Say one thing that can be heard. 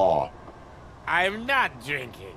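A man answers in a slurred, mumbling voice.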